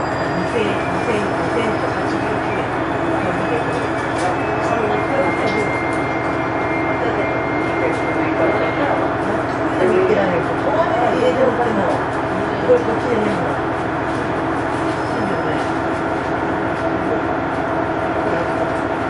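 A train's diesel engine idles with a steady low rumble.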